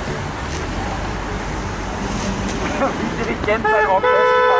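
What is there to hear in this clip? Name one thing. A car drives past close by on the road.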